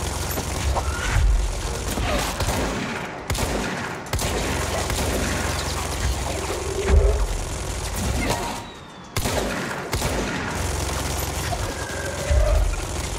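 A pistol fires repeated shots.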